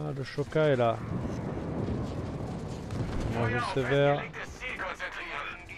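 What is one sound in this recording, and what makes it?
Anti-aircraft guns fire and shells burst in rapid bursts.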